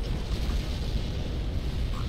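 A large explosion booms and rumbles.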